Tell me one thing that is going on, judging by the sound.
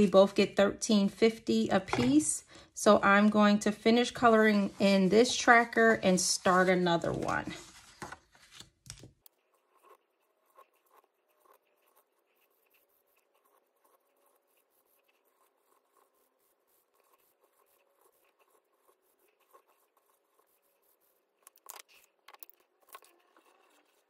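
Paper cards rustle as they are handled.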